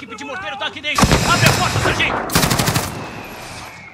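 Loud bursts of gunfire ring out nearby.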